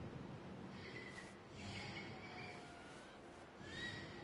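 A bird of prey screeches.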